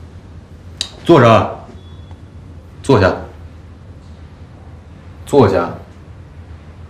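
A young woman speaks up sharply from across a room.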